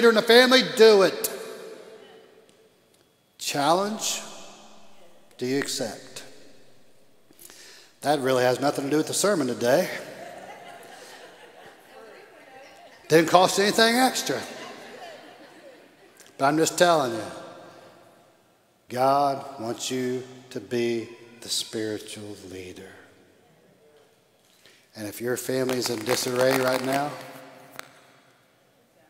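An older man speaks with animation through a microphone in a large echoing hall.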